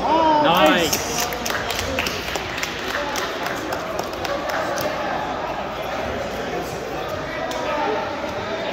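A crowd of people talk and call out in a large echoing hall.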